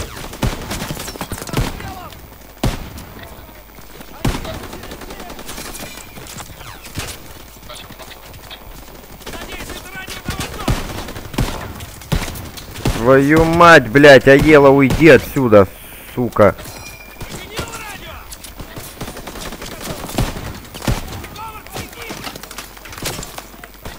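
An M1 Garand rifle fires single shots.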